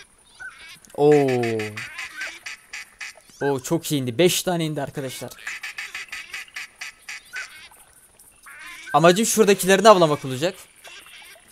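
A duck call quacks loudly in a series of falling notes.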